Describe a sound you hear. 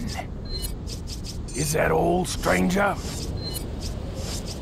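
Short electronic menu beeps sound as selections change.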